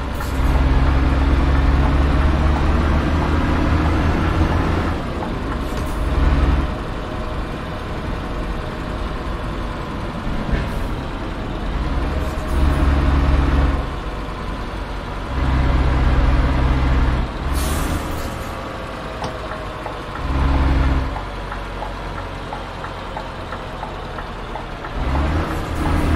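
A heavy truck engine drones steadily, swelling louder in bursts and easing off again.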